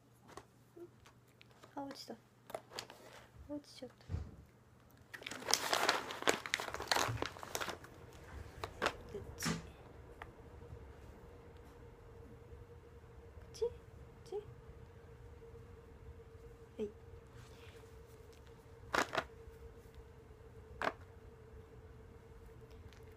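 A small dog chews a treat.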